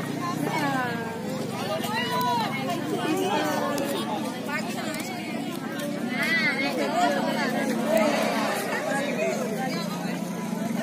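A crowd of spectators shouts and chatters outdoors.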